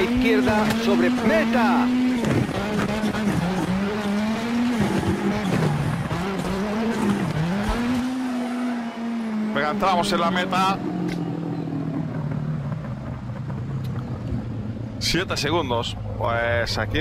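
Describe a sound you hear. A rally car engine revs and whines up and down through gear changes.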